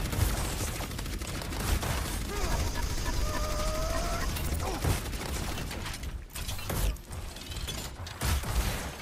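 A video game energy weapon fires in rapid bursts with loud thumping blasts.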